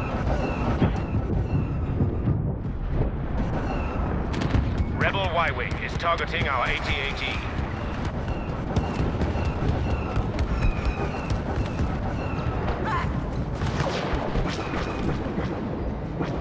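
Laser blasters fire in rapid bursts of sharp shots.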